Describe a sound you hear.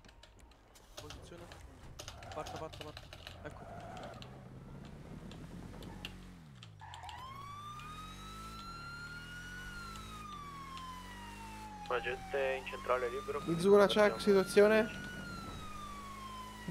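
A car engine revs and accelerates.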